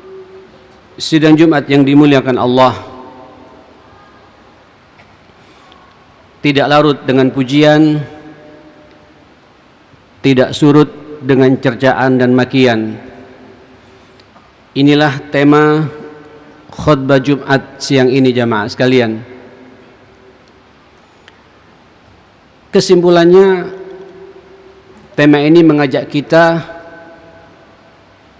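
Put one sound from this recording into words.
A man preaches into a microphone in short, forceful bursts with pauses between them, heard through loudspeakers in a large echoing hall.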